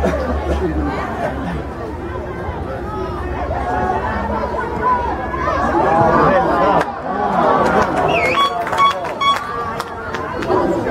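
Many voices of players and onlookers shout and call out outdoors.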